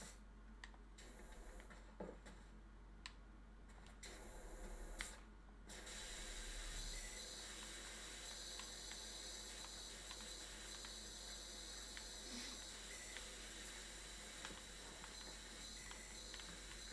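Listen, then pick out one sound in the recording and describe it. A pressure washer sprays water with a steady hiss.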